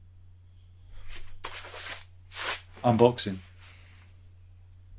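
A cardboard envelope rustles and scrapes as it is handled.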